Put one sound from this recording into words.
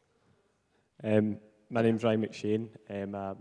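A young man speaks into a handheld microphone.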